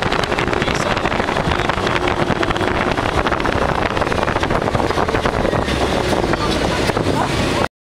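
Strong wind roars and buffets loudly, close by.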